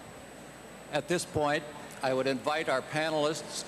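An elderly man speaks loudly and animatedly close to a microphone.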